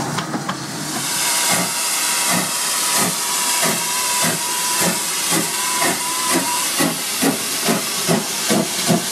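A steam locomotive chuffs close by in a steady, quickening rhythm.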